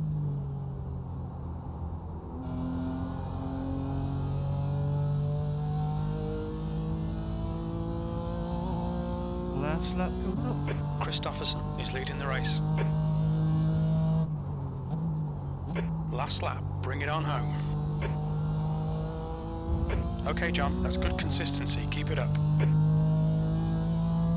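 A racing car engine roars, rising in pitch through the gears and dropping at each shift.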